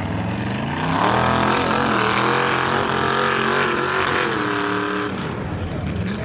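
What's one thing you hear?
Mud splashes and squelches under big tyres.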